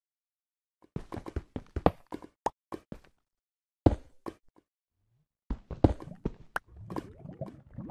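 Blocks thump softly as they are placed and broken.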